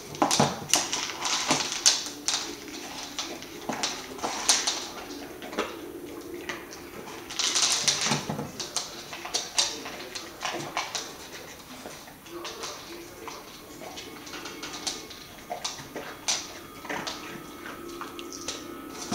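A rubber toy knocks and rolls on a wooden floor.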